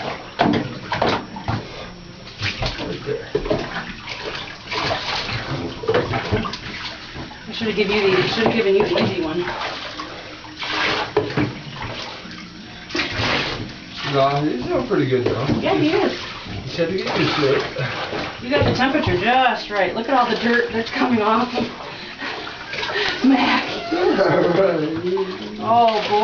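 Water splashes and sloshes in a bathtub.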